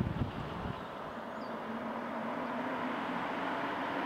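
A car drives up a road toward the listener.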